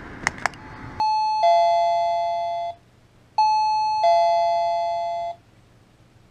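A doorbell chimes two tones, twice.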